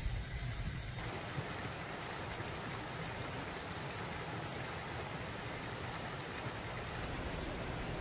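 Wind rustles large leaves outdoors.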